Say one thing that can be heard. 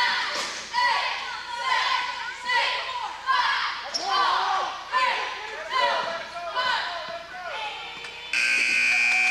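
Wheelchair tyres squeal and chirp sharply on a hard floor in an echoing hall.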